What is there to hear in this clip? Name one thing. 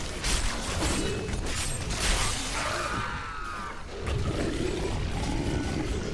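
Game combat effects crackle and clash in quick bursts.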